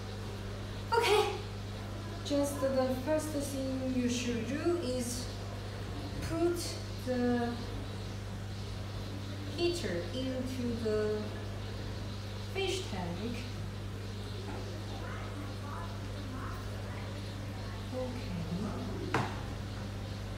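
A young person talks with animation close to a microphone.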